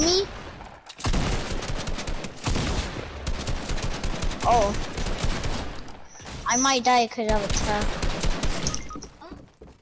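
Gunshots fire in rapid bursts at close range.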